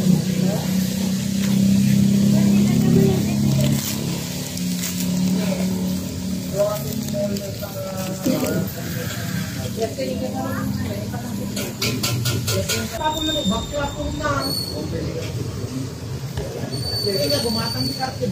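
Paper wrapping rustles and crinkles.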